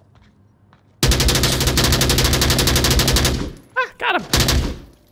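A machine gun fires a long, rapid burst at close range.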